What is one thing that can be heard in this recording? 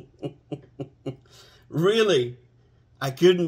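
An older man laughs loudly close by.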